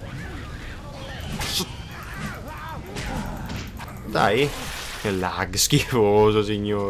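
An axe swings and thuds into flesh.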